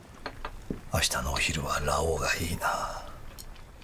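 An older man speaks in a low, gruff voice.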